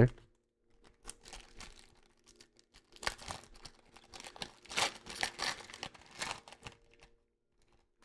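A foil wrapper crinkles and tears as hands rip it open.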